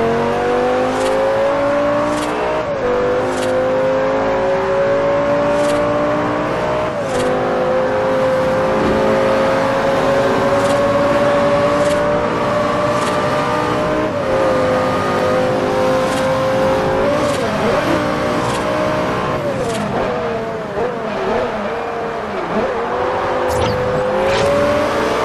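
A sports car engine roars at high revs, its pitch rising and dropping as gears shift.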